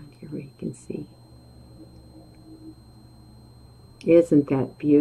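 An older woman speaks calmly and close to a microphone.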